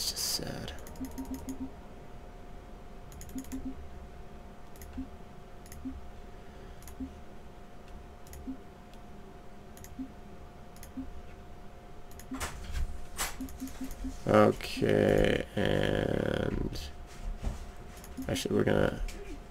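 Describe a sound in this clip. Short soft menu clicks blip now and then.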